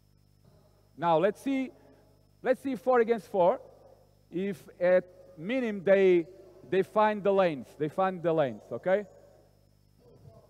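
An older man speaks with animation close by.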